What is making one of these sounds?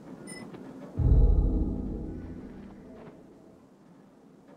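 A deep game chime booms and slowly fades.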